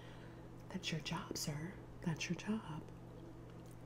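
A woman speaks softly and closely into a microphone.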